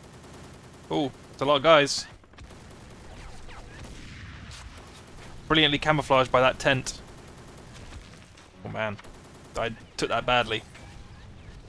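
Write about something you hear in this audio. Gunshots fire in loud, rapid bursts.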